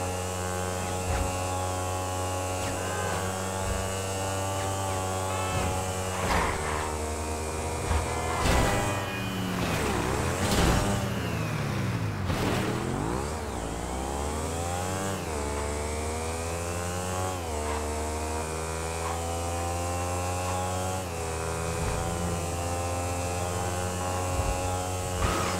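A motorcycle engine roars steadily, revving up and down as it shifts gears.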